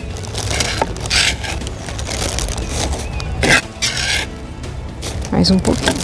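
A trowel scrapes and scoops soil.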